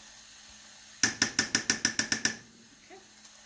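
A metal spoon taps rapidly against a pan's rim.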